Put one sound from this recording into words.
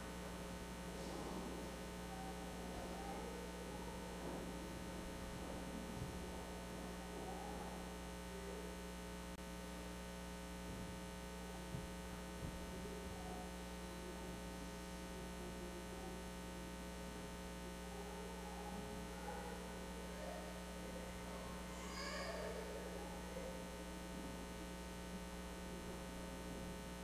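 An elderly man speaks calmly at a distance in an echoing room.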